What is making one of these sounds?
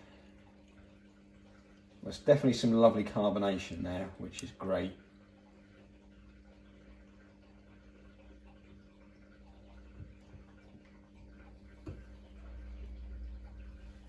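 Beer trickles from a tap into a glass.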